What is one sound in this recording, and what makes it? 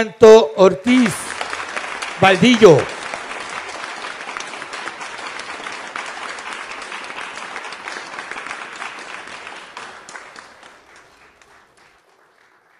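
An audience applauds and then fades away.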